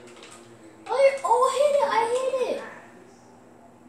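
A boy shouts loudly.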